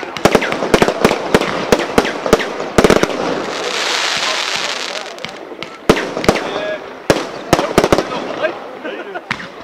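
Fireworks burst with sharp bangs outdoors.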